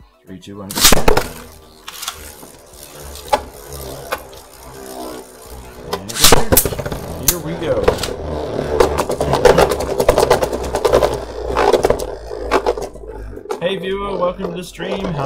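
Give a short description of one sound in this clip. Spinning tops whir and clack against each other in a plastic dish.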